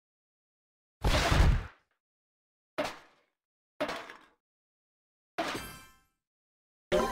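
Game blocks burst with short popping and whooshing effects.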